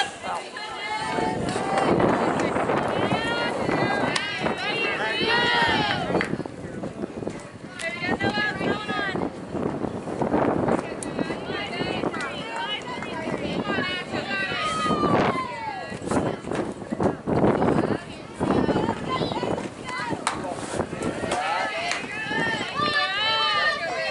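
Young girls chant and cheer loudly nearby.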